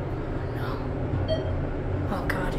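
An elevator button beeps when pressed.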